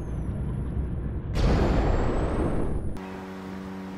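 Water bubbles and gurgles underwater.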